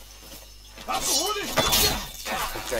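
A sudden scuffle and heavy thud of a body being struck.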